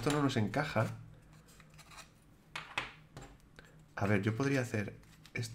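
Small wooden puzzle pieces click and tap against a wooden board.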